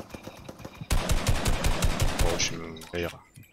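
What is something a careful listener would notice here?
A rifle fires a string of shots.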